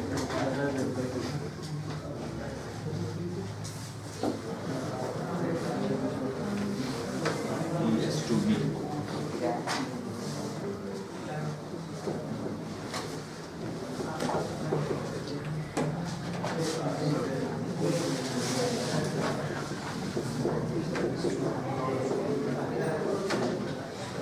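A man explains calmly in a room that echoes a little.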